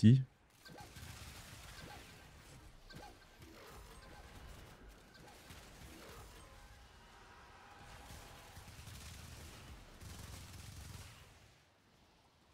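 Game gunfire and effects play faintly.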